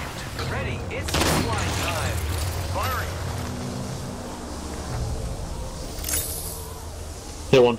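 A zipline whirs as a rider slides along it.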